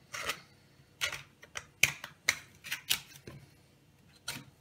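A knife blade taps against a wooden board.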